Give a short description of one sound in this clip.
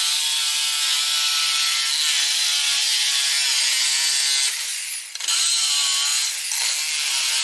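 A jigsaw buzzes loudly as it cuts through wood.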